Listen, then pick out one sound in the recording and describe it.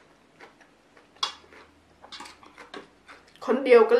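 A fork scrapes and clinks on a plate.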